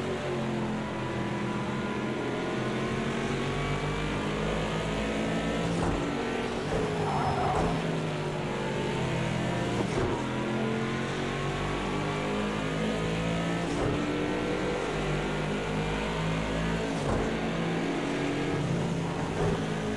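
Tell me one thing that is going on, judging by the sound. A racing car engine roars and revs up and down through gear changes, heard from inside the car.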